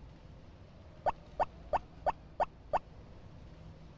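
Quick light footsteps tap on a hard floor.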